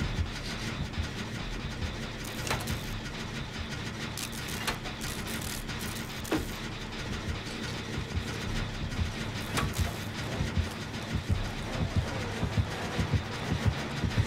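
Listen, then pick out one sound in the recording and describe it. A machine rattles and clanks as it is worked on by hand.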